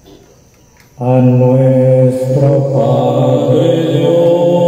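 A man sings loudly through a microphone, heard through a loudspeaker.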